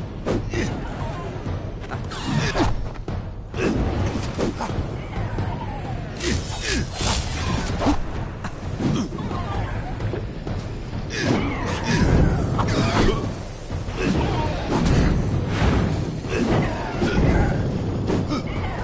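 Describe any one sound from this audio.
Swords clash and strike in combat.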